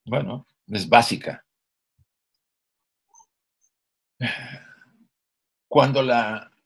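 An elderly man speaks calmly in short phrases over an online call.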